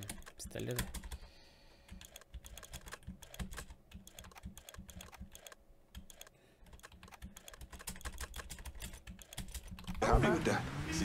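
Menu clicks tick quickly one after another.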